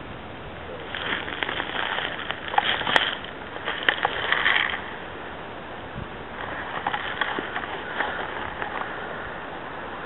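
Footsteps crunch and rustle through dry brush and twigs close by.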